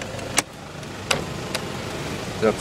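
A power window switch clicks.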